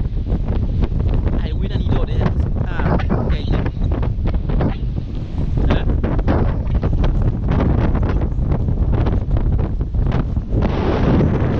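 Waves wash against a rocky shore.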